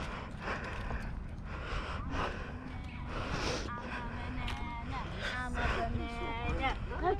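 Footsteps crunch slowly on dry dirt and leaves.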